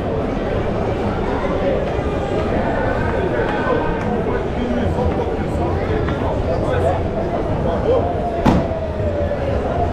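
A busy crowd chatters and murmurs all around outdoors.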